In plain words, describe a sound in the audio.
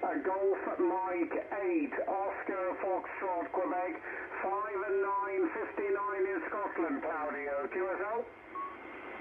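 A man's voice speaks through a radio loudspeaker, crackly and narrow.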